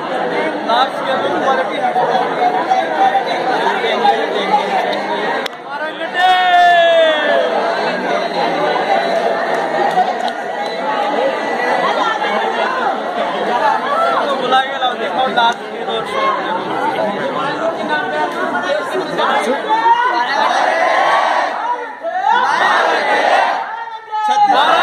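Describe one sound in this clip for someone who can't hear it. A crowd of young men and women chatters and cheers outdoors.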